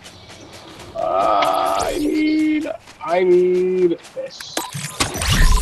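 Bright electronic chimes ring out from a game menu.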